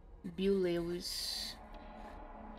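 A box drops onto the floor with a soft thud.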